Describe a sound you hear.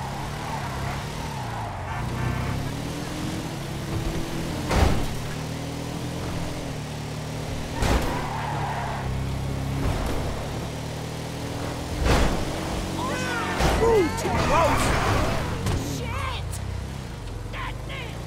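A racing car engine roars steadily, shifting up through the gears.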